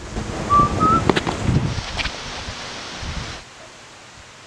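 A young man speaks casually close by.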